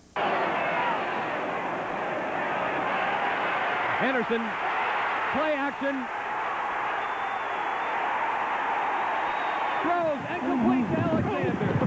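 A stadium crowd roars.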